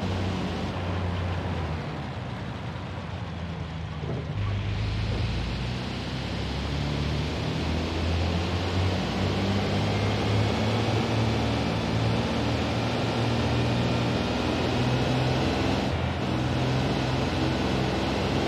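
A car engine hums and revs steadily as the car drives along.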